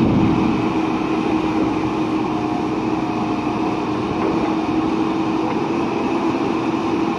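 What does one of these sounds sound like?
A diesel engine of a backhoe loader rumbles steadily close by.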